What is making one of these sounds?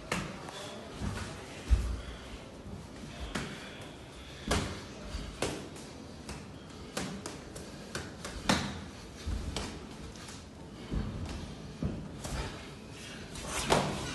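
Boxing gloves thud sharply against punch mitts.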